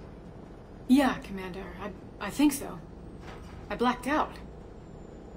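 A woman answers softly, sounding tired.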